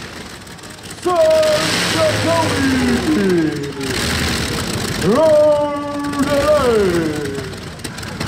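A tractor engine revs up and down in rising and falling bursts.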